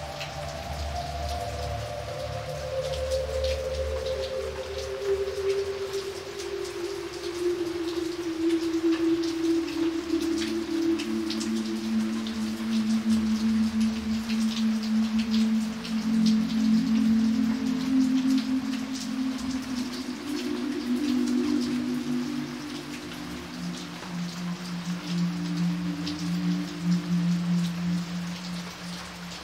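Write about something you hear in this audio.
Rain patters steadily onto a puddle.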